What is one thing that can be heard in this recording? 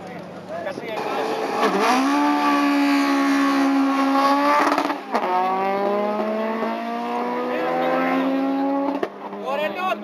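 A car engine revs hard and roars as the car accelerates away.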